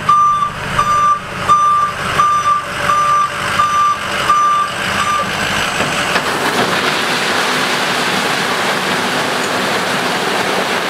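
A truck engine idles.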